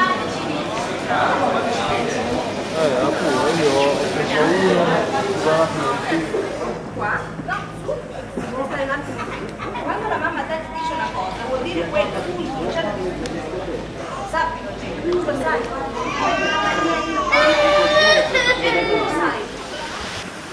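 A crowd of adult men and women chatters outdoors.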